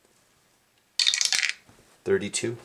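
Dice rattle down through a small wooden dice tower and clatter onto a table.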